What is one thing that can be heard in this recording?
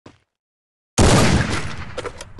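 A rifle fires a single loud shot.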